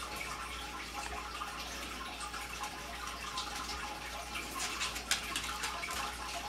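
A small rodent's claws scratch and patter softly on a tank floor.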